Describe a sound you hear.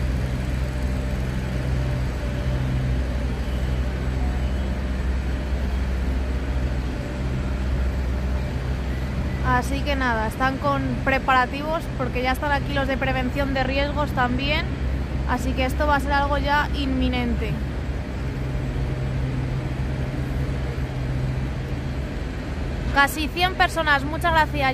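A heavy machine engine rumbles steadily nearby.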